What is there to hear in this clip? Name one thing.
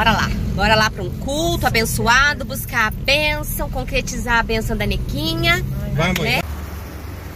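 A woman talks with animation close to the microphone.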